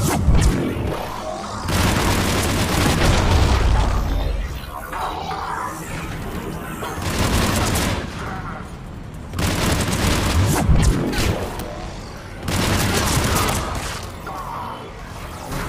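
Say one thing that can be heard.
Electric energy crackles and buzzes.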